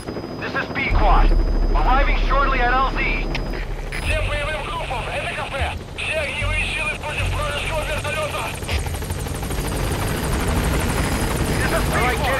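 A helicopter rumbles overhead.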